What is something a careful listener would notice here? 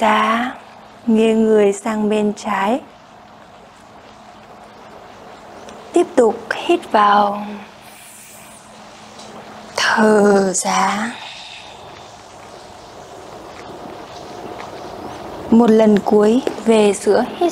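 A young woman speaks calmly into a close microphone, giving instructions in short phrases.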